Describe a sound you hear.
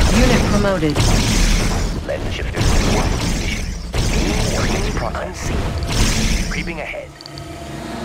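Explosions boom and crackle in a battle.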